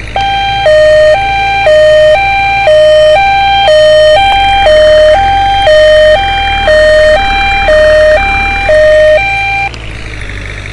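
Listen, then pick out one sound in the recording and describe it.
An ambulance siren wails in a loud two-tone pattern, then stops.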